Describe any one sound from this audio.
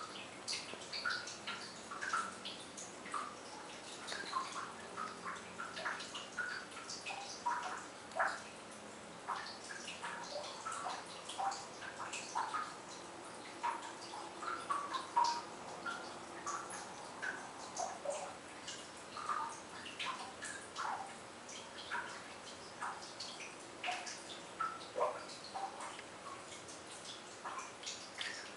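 A puppy whimpers and yelps in short high cries.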